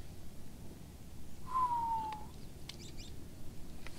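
A fishing reel whirs as line pays out during a cast.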